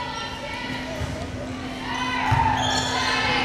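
A volleyball is struck with a dull thump.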